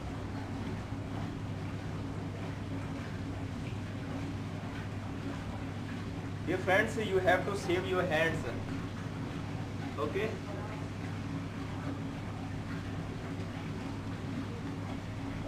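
Water trickles from a bottle into a funnel.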